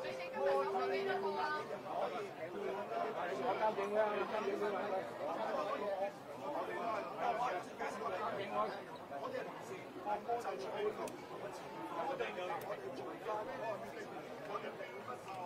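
A crowd of men talk and shout over each other close by.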